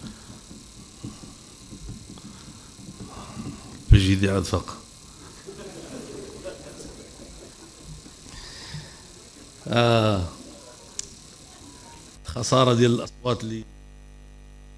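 An elderly man speaks forcefully into a microphone, heard through loudspeakers.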